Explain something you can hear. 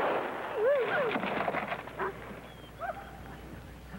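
A wild animal snarls and growls up close.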